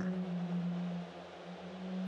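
A man murmurs thoughtfully, close by.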